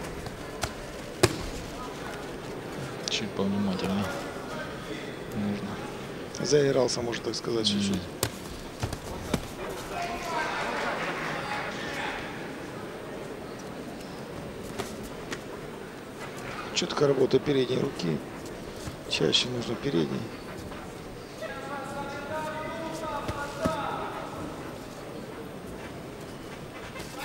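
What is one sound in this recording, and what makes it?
A large crowd murmurs in a big hall.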